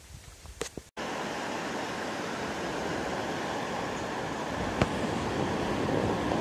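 Waves break and wash steadily onto a beach.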